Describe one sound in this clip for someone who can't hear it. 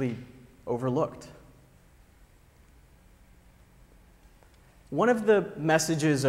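A man speaks calmly through a microphone in a large hall, with pauses.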